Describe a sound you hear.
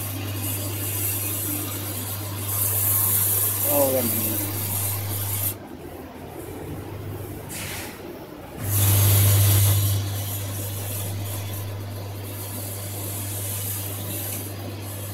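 A machine hums steadily with a low drone and a hissing whir.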